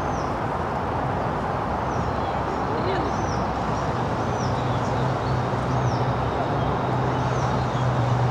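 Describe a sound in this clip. A woman speaks quietly to a dog outdoors.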